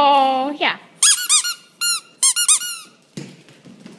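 A dog squeaks a rubber toy ball.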